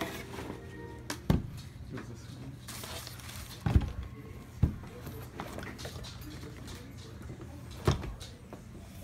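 A wooden box knocks and thumps as it is handled.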